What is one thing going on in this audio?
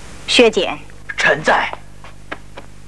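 A man answers briefly.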